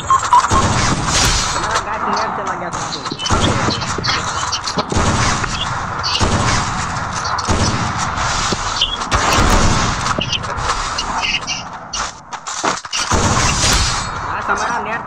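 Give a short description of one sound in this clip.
Game gunshots crack in rapid bursts.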